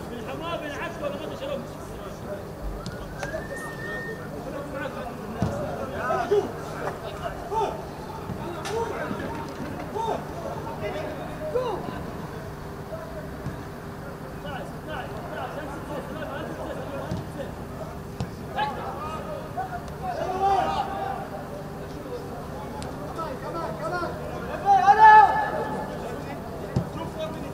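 Players shout to each other across an open pitch outdoors.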